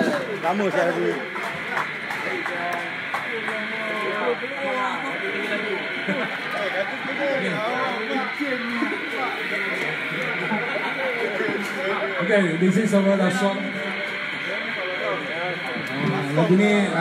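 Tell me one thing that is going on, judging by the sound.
An electric guitar plays a melody through loudspeakers.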